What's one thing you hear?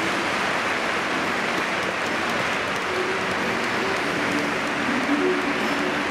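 A large crowd claps in rhythm.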